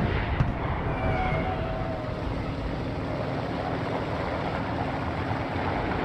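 A propeller plane's engine roars steadily.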